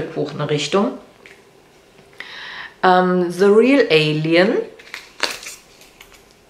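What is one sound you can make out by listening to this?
A middle-aged woman speaks expressively close to a microphone.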